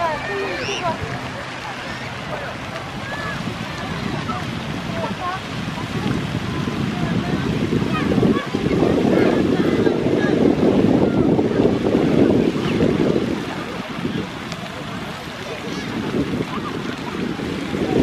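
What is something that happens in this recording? Fountains splash and spray steadily outdoors.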